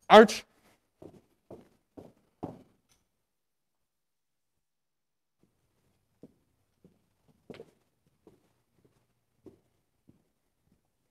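Shoes step in time on a carpeted floor.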